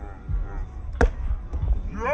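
A volleyball is struck with a sharp slap outdoors.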